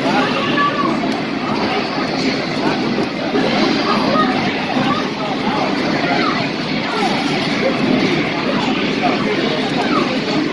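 Fighting game hits and effects sound loudly from an arcade machine's speakers.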